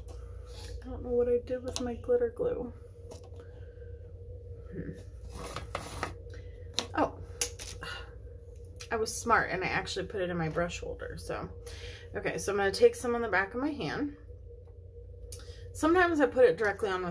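A woman talks calmly and close by, pausing now and then.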